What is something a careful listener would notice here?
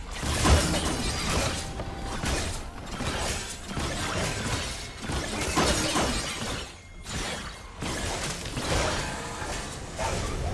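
Magic blasts whoosh and crackle in a video game fight.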